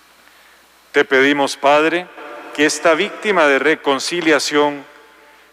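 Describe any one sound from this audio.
A man sings a chant through a loudspeaker.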